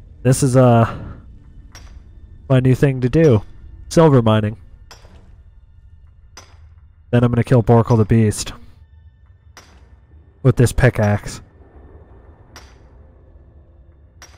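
A pickaxe strikes rock with sharp, repeated clinks.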